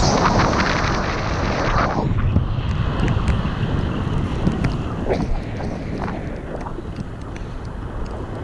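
Strong wind rushes and buffets past high in the open air.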